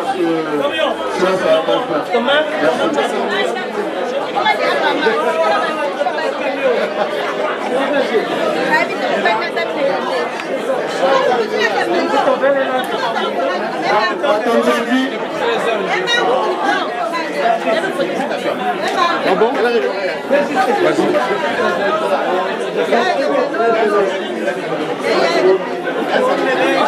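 A crowd of men and women chatter and talk loudly nearby.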